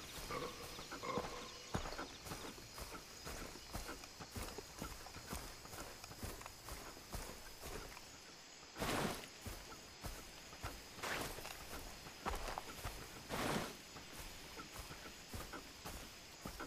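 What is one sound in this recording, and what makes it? Footsteps rustle through grass at a steady walking pace.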